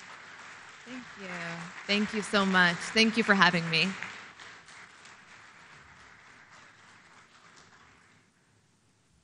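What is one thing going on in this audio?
An audience applauds in a large hall and the applause slowly fades.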